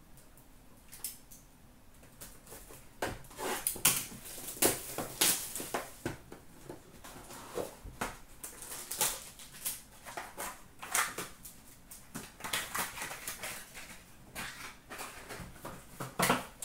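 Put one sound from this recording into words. Cards and plastic packs rustle and clatter as hands rummage through a box.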